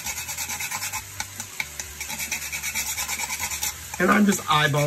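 A nutmeg scrapes rhythmically against a metal grater.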